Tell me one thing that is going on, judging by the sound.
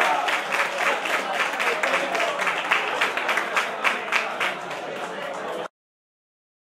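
A crowd applauds steadily in a room.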